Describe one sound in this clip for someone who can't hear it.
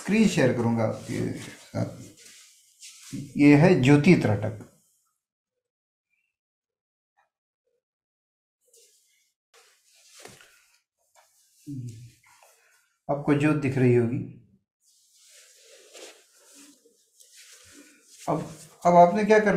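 An elderly man speaks calmly and slowly over a microphone, with long pauses.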